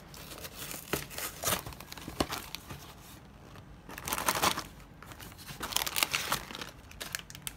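Paper packaging rustles and crinkles.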